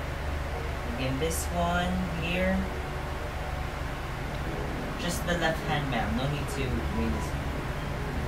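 A young man speaks quietly close by.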